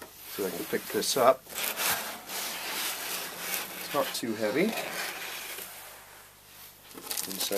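Foam packing squeaks and rustles.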